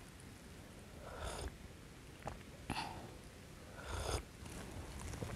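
A woman sips hot tea with soft slurps.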